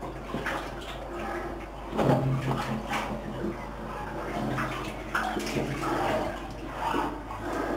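A person crawls over rock with scraping and shuffling.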